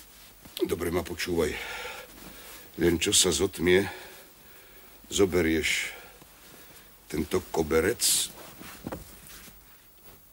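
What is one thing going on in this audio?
A man speaks calmly and deeply, close by.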